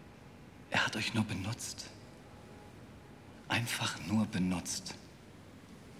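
A man speaks tensely and close by.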